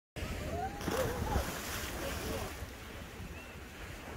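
A swimmer paddles through the water with splashing strokes.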